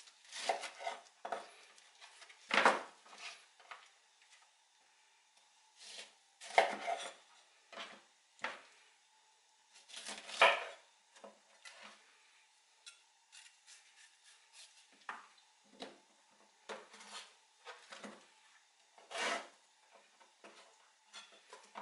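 A knife cuts through firm fruit and taps on a wooden board.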